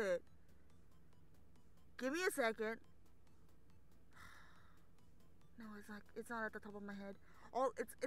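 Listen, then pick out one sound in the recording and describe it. A young woman giggles close to a microphone.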